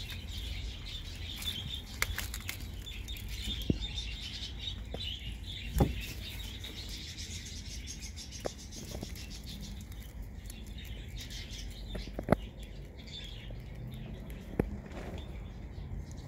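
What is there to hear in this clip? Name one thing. A rabbit munches on leaves.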